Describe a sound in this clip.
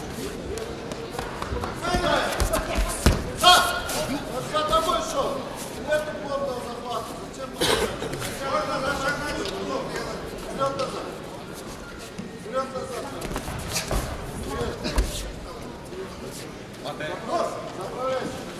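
A crowd shouts and cheers in a large echoing arena.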